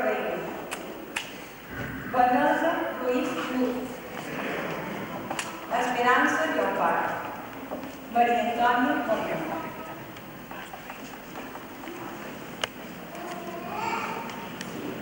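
A group of young men and women sing together in a large echoing hall.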